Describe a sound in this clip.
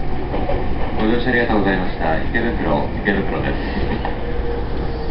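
A crowd of people chatters nearby in a large echoing hall.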